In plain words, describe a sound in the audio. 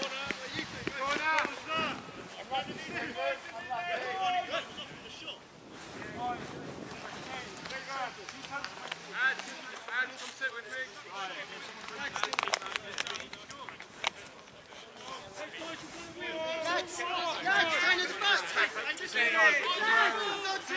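Men shout and call out to each other across an open playing field.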